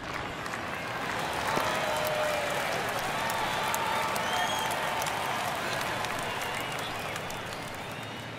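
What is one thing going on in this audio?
A crowd cheers loudly, then settles.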